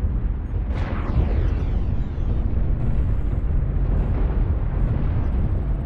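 A heavy machine rumbles low and steady.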